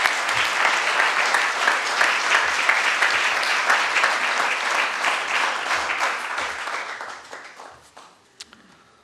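An audience applauds in a room, then the applause dies away.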